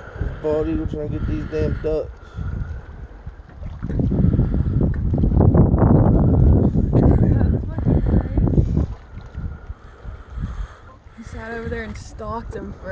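Small waves lap on open water.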